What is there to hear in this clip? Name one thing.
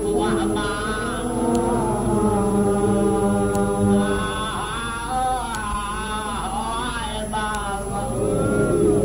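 A middle-aged man chants in a sustained, mournful voice through a microphone.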